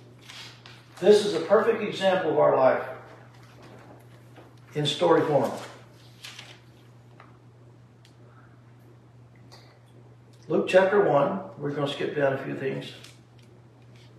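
An elderly man reads aloud calmly, in short phrases with pauses.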